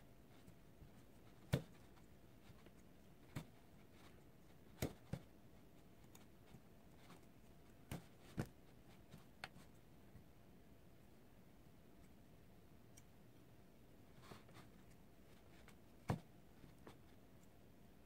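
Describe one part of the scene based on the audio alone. A plastic comb rustles through doll hair.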